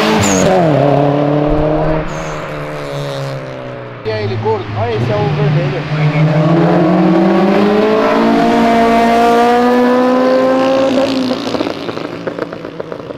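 A car engine revs loudly, rising and falling in pitch.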